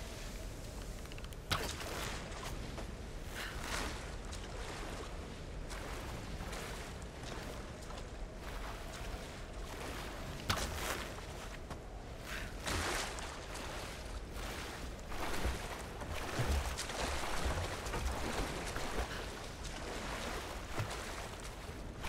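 Rushing water splashes steadily.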